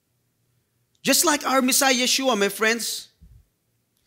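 A man speaks with animation into a microphone, heard through loudspeakers.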